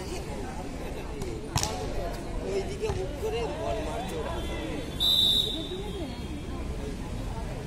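A crowd of young men shouts and chatters outdoors.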